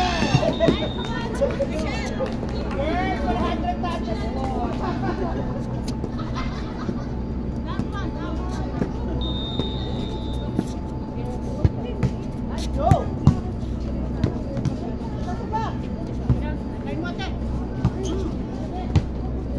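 Young men and women chatter and call out nearby, outdoors.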